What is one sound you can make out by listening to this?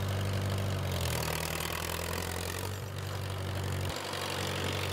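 A tractor engine revs up as the loader lifts.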